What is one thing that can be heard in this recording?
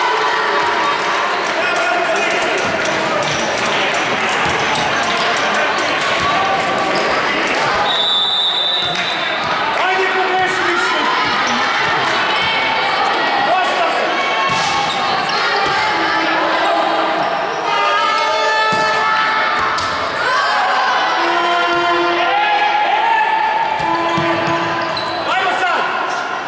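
A crowd of young women shouts and cheers in a large echoing hall.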